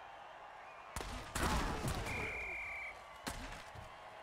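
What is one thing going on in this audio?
Football players collide in a heavy tackle.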